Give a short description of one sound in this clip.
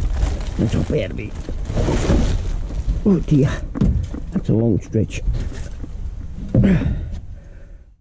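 Empty metal cans rattle and clink together.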